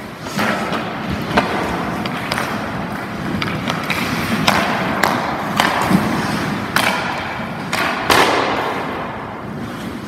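Hockey skates scrape across ice in a large echoing rink.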